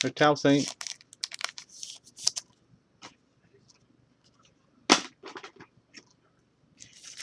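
Trading cards rustle and click as fingers handle them close by.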